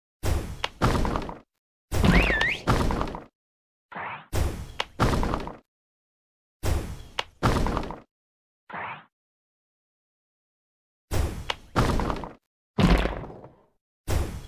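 Bubbles pop and burst in short bright bursts of game sound effects.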